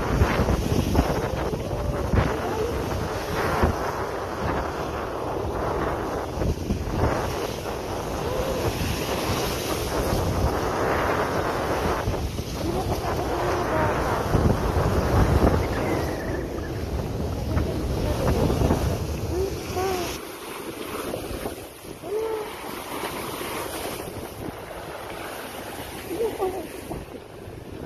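Choppy water splashes against a stone edge.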